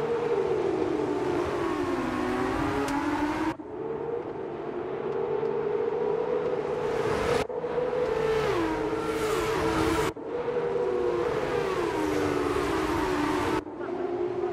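Car engines drop in pitch as the cars brake for a corner.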